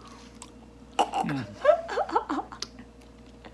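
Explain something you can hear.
A young man exclaims and laughs with his mouth full close by.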